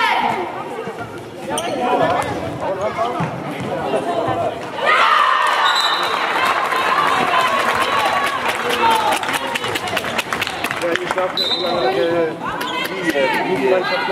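A handball bounces on the floor.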